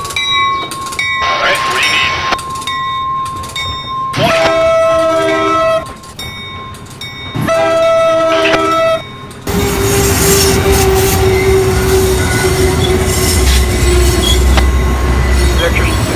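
A train rumbles past loudly, wheels clattering on the rails.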